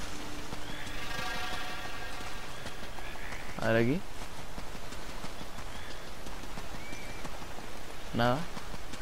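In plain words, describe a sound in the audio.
Footsteps rustle through dense grass and leaves.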